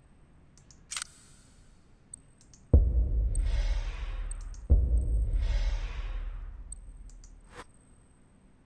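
Menu selections click sharply.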